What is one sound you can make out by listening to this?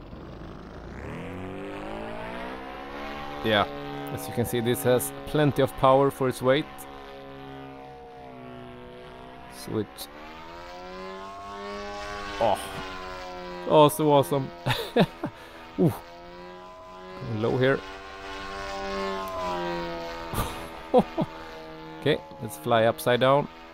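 A model plane's engine drones steadily, rising and falling in pitch.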